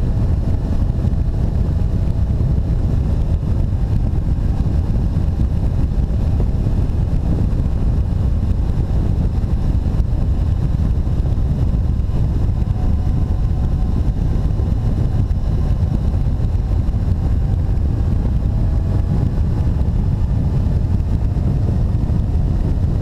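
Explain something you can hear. A four-cylinder motorcycle engine hums while cruising along a road.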